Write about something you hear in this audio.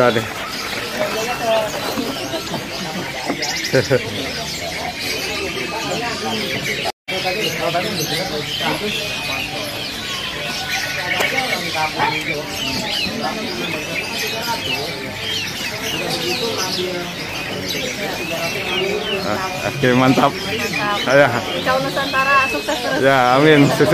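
Many small birds chirp and twitter busily nearby.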